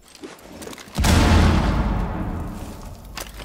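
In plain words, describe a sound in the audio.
A grenade explodes nearby with a loud, echoing boom.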